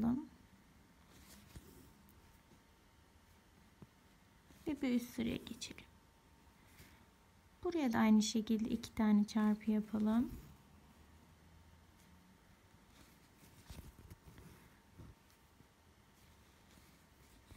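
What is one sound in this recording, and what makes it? Thread is pulled through cloth with a soft rasp.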